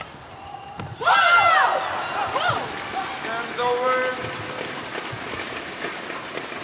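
A crowd cheers and applauds in a large echoing hall.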